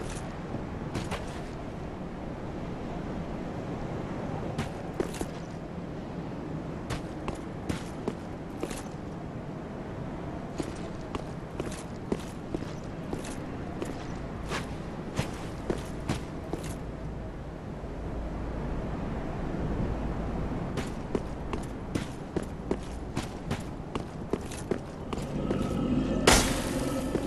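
Armoured footsteps crunch on snow and stone.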